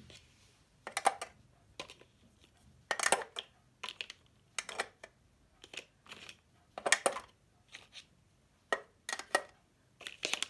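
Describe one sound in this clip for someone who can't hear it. Plastic marker pens clack into a plastic organizer.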